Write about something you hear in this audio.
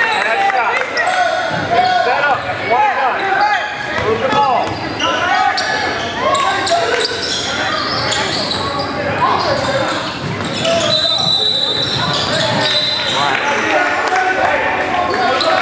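Sneakers squeak sharply on a hard floor, echoing in a large hall.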